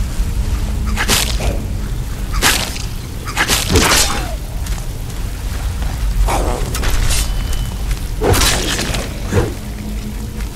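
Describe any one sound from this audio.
Blades whoosh and strike in a fight.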